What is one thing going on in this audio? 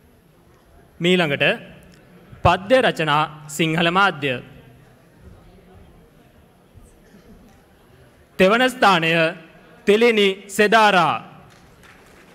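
A woman speaks loudly over a loudspeaker in an echoing hall.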